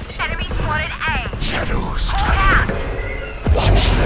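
A game's magic orb whooshes and hums.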